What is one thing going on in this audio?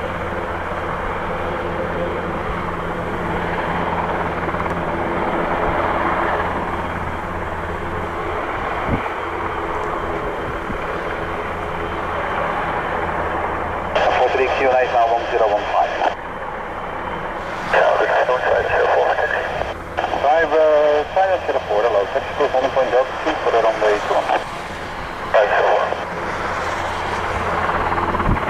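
A helicopter engine whines steadily at idle.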